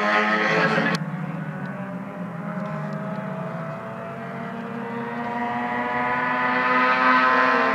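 A racing car engine grows louder as it approaches, its pitch climbing.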